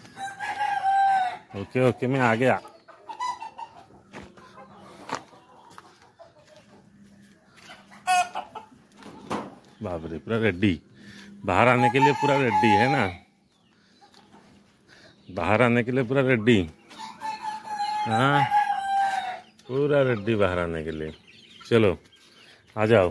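Roosters crow loudly nearby, again and again.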